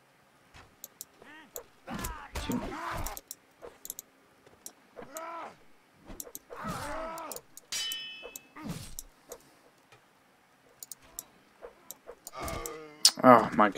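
Swords clash and clang.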